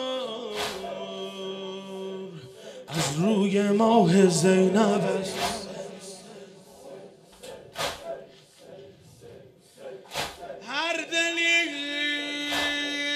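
A man chants loudly through a microphone in a mournful, singing voice.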